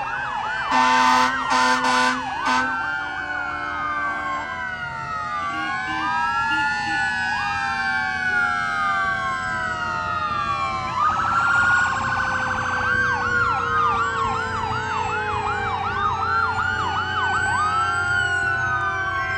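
Several sirens wail and yelp together, rising and falling throughout.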